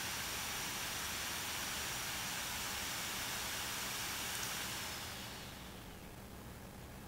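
Laptop cooling fans whir loudly with a steady rushing hiss, then spin down and fade to a soft hum.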